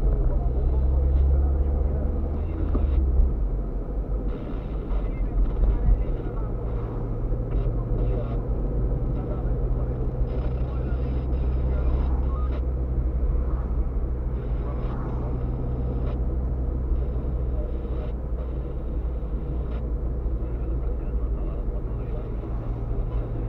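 A car engine hums steadily from inside the cabin as it drives.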